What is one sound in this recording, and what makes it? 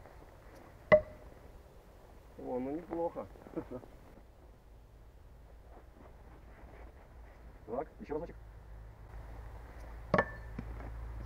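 A knife thuds into wood.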